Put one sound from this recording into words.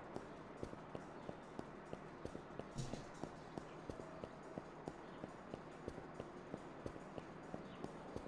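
Footsteps tap at a steady walking pace on pavement.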